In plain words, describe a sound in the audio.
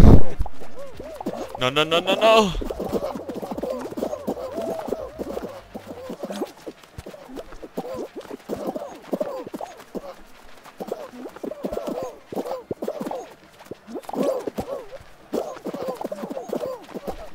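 Small cartoon figures squeak and bump against each other.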